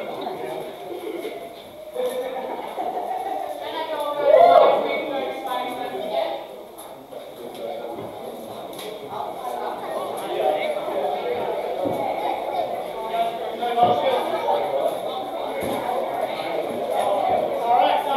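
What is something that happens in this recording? A crowd of spectators chatters and murmurs in a large echoing hall.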